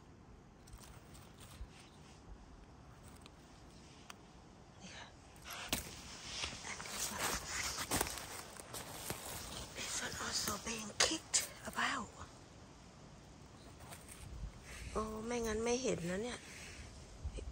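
A knife cuts through a mushroom stem.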